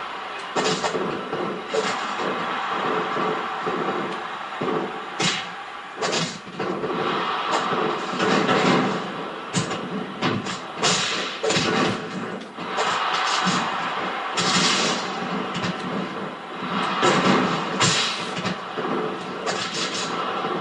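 Punches and slams thud in a wrestling game.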